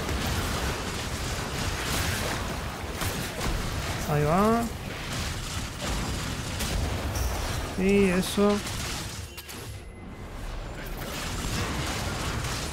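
Magic spells crackle and whoosh in a busy fight.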